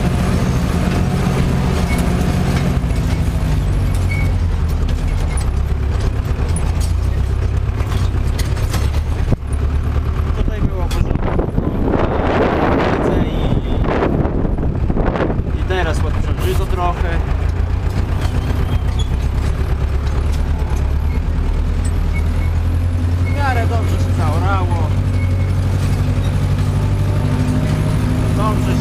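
A tractor engine drones steadily, heard from inside the cab.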